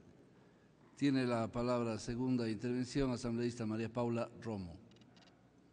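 An older man speaks calmly into a microphone, heard through loudspeakers in a large hall.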